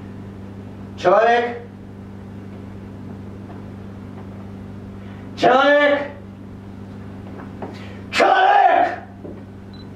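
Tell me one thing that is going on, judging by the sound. A man speaks out loudly in short, exclaiming bursts.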